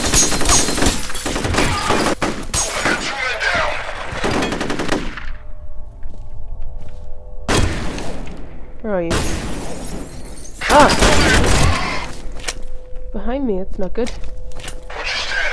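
Explosions boom and debris clatters.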